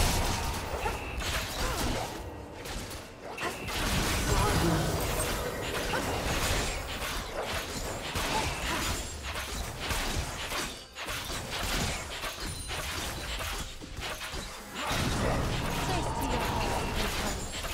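Spell effects and hits clash and crackle in a battle.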